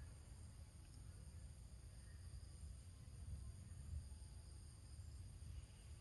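A small monkey scrambles and scratches softly against rock.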